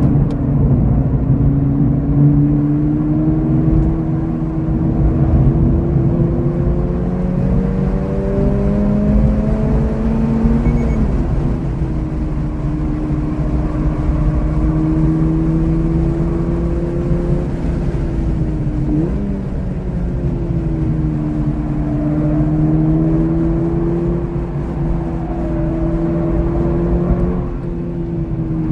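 Tyres rumble on the track surface.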